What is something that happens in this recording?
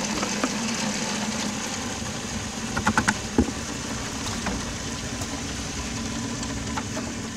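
A mixer drum hums steadily.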